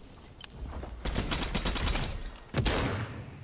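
Gunshots fire in quick succession.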